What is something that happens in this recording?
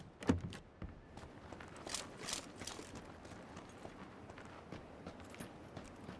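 Footsteps crunch quickly over dry ground outdoors.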